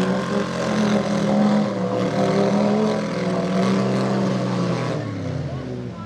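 An engine roars loudly and revs.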